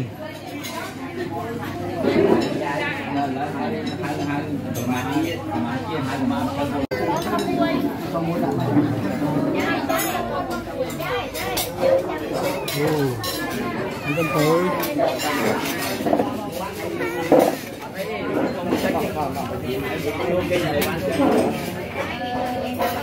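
A crowd of adults chatters all around.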